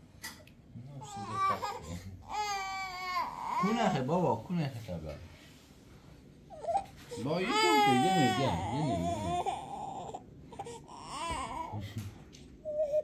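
A toddler cries and whimpers close by.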